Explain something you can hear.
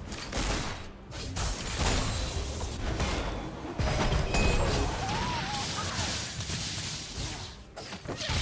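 Magic spells whoosh and crackle during a fast game battle.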